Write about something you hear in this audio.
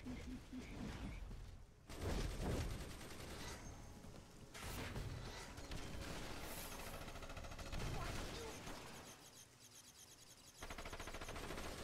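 Fiery blasts burst and crackle.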